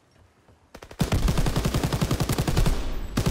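A heavy machine gun fires in rapid, loud bursts.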